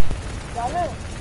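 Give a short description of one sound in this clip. A rifle fires rapid shots up close.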